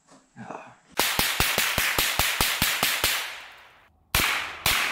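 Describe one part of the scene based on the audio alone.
A gun fires in rapid bursts outdoors, echoing through trees.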